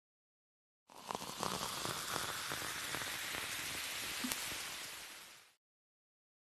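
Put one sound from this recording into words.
Bubbles fizz and crackle in a glass of soda.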